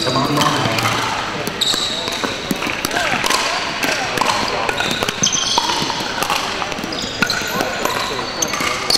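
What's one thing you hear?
Paddles strike balls with sharp pops in a large echoing hall.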